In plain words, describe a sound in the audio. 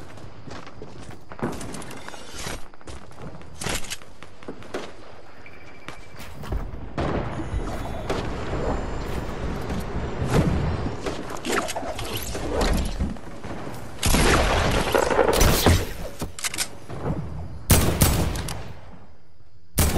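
Footsteps thud on grass and wood.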